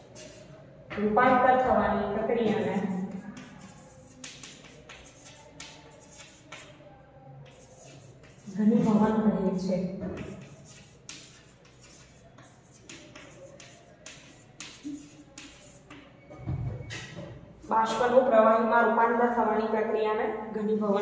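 A woman speaks clearly and calmly nearby, as if teaching.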